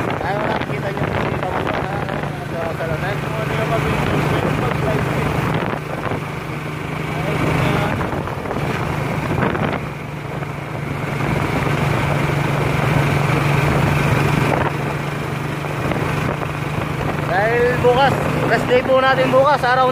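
Tyres roll over the road with a steady rumble.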